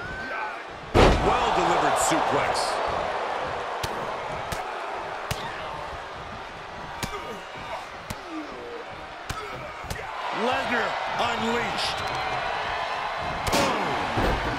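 Heavy thuds of bodies slam onto a wrestling ring mat.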